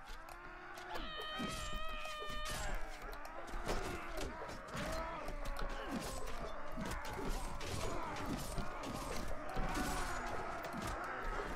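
Metal weapons clash and clang repeatedly.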